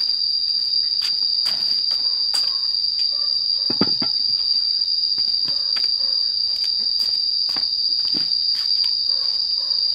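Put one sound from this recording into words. Footsteps scuff on a concrete floor.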